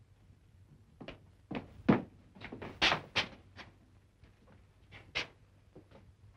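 Boots thud on a wooden floor.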